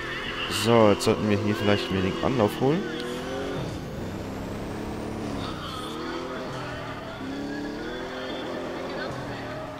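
Tyres screech as a car drifts on asphalt.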